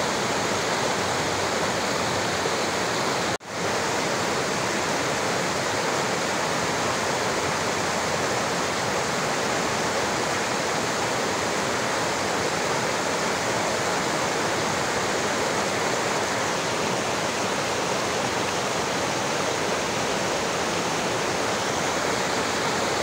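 A stream rushes and splashes over rocks close by.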